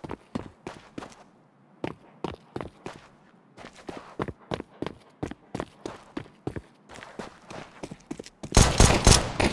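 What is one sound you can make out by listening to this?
Footsteps tap steadily on hard ground.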